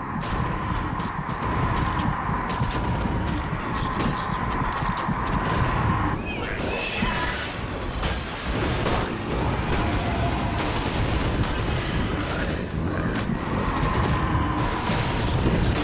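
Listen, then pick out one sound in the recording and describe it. Swords clash and clang in a busy fight.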